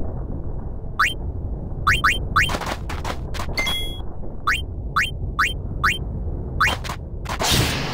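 Short menu beeps click in quick succession.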